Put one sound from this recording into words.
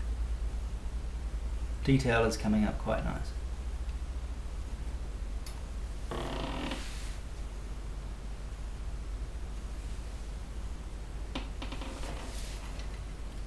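A brush scrapes softly across a canvas.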